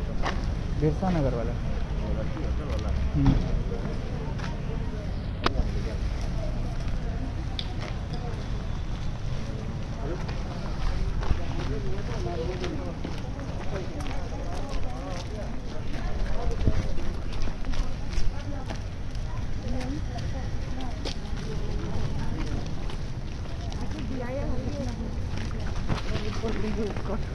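Several women and men talk over one another nearby.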